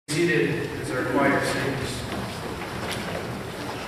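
A young man speaks calmly in a large echoing room.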